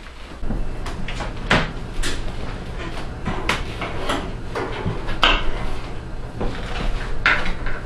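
A knife chops on a cutting board.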